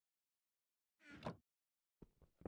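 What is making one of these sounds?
A wooden chest creaks shut.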